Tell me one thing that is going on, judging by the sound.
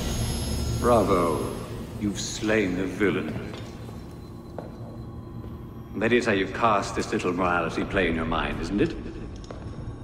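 A man speaks calmly and menacingly, close by.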